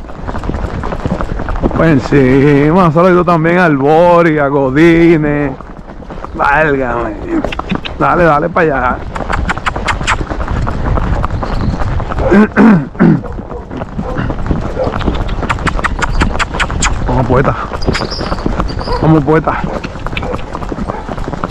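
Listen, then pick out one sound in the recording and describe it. A horse's hooves clop steadily on a paved road.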